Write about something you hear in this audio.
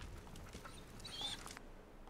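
A dog whimpers softly.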